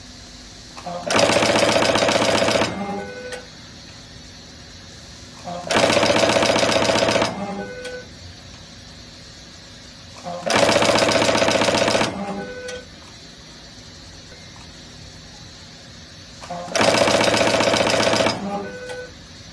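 A machine whirs loudly in short repeated bursts.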